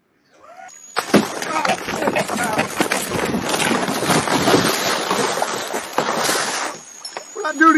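Water splashes and churns as a fish thrashes close by.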